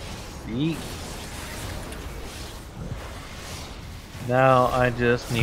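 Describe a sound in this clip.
Fiery spell blasts whoosh and crackle.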